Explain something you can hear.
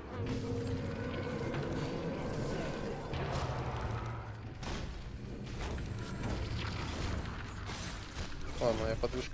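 Game combat sounds clash and crackle.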